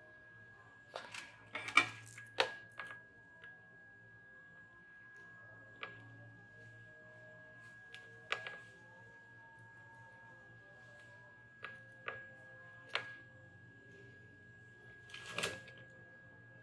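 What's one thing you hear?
Small clicks and knocks come as hands handle a circuit board.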